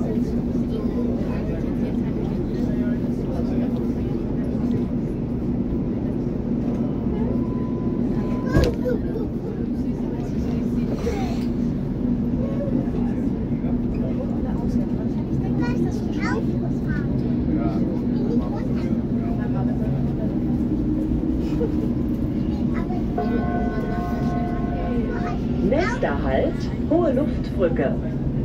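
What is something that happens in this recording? A train rumbles and hums steadily, heard from inside a carriage.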